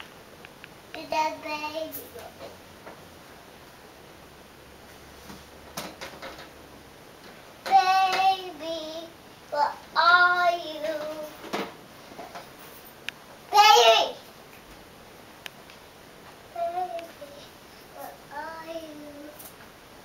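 A toddler babbles and squeals in high, short bursts nearby.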